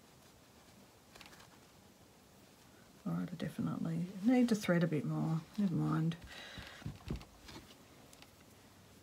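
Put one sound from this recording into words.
Fabric rustles softly as hands handle it.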